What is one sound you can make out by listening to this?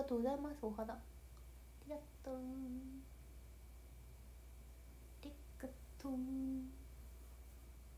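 A young woman speaks softly and casually close to a microphone, in short bursts.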